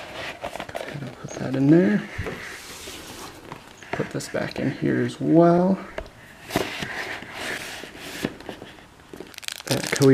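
Cardboard sleeves slide and rustle against each other.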